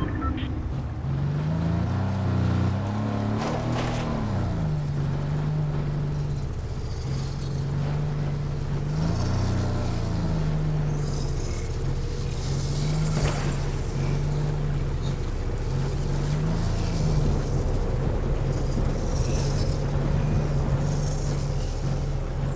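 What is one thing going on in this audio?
A truck engine hums and revs as it drives.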